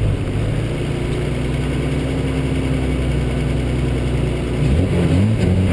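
A car engine idles low and steady.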